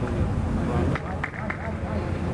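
A football thuds as it is kicked on grass.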